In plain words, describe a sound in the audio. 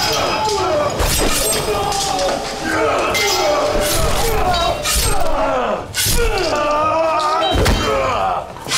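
Metal blades clash and clang in a scuffle.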